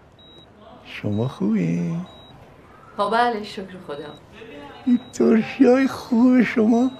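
An elderly man talks cheerfully nearby.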